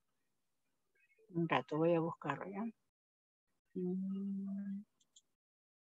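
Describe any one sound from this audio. A young woman speaks briefly through an online call.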